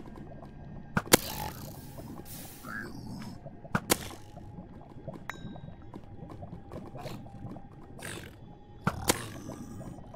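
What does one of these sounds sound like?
A bow twangs as arrows are fired.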